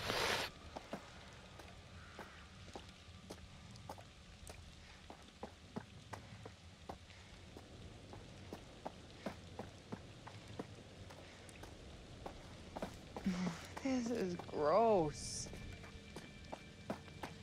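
Footsteps crunch steadily on a gritty path.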